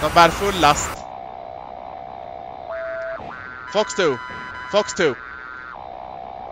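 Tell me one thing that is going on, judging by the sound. A cockpit warning tone sounds in steady beeps.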